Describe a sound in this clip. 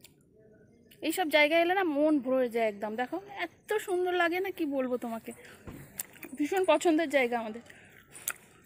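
A young woman speaks close by with animation, in a high, lilting voice.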